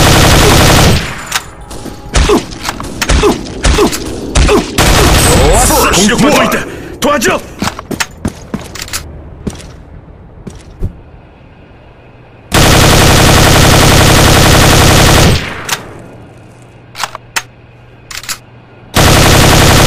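A rifle is reloaded with metallic clicks and clacks.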